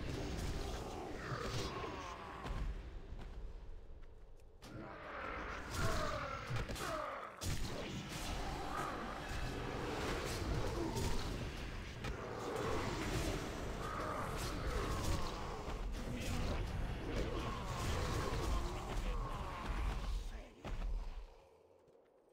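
Spells and weapons clash in a game battle.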